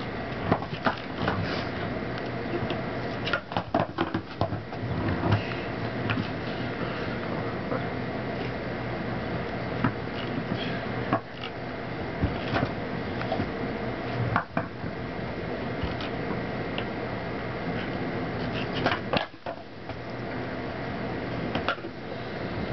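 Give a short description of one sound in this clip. Skateboards slap and knock on concrete.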